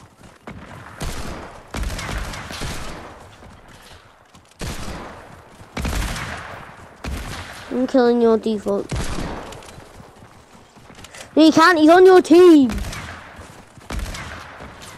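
Gunshots fire in loud bursts, echoing briefly.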